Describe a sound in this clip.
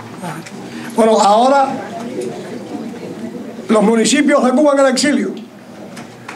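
An elderly man speaks through a microphone.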